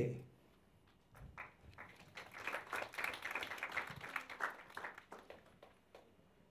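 Hands clap in applause.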